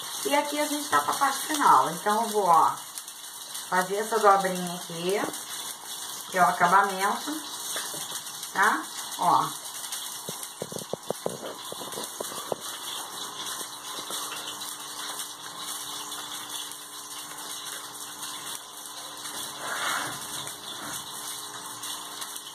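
Paper rustles and crinkles as it is folded.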